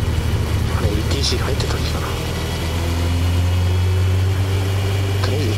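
Tyres roll over the road with a low rumble.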